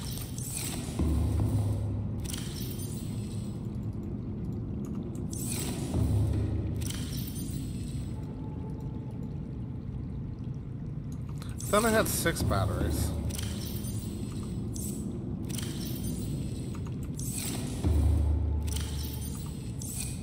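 Locker doors open and close with soft mechanical thuds.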